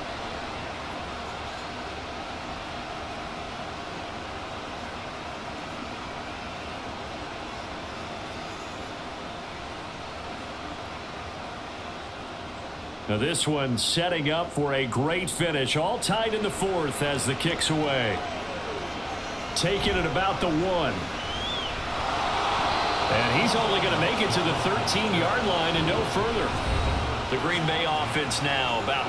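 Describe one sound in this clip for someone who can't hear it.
A large stadium crowd murmurs steadily in the background.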